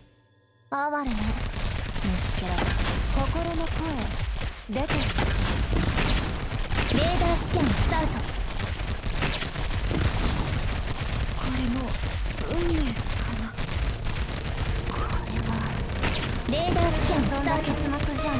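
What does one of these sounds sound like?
Guns fire rapidly and without pause in a noisy battle.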